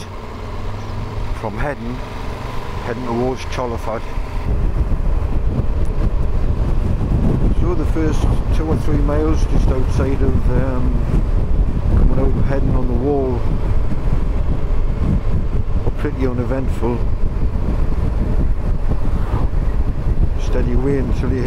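A motorcycle engine hums.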